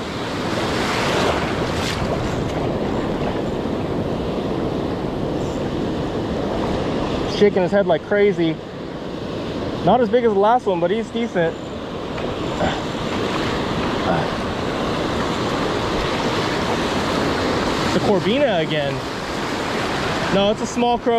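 Waves wash and break on a shore with a steady rushing roar.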